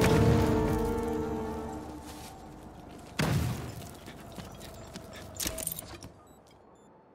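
Video game sound effects ring out and slowly fade.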